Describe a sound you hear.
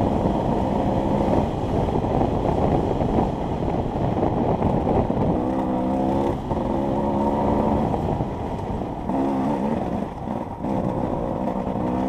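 A motorbike engine roars close by, its pitch rising and falling as it revs.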